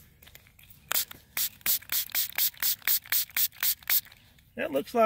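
A spray bottle squirts water in quick, repeated bursts.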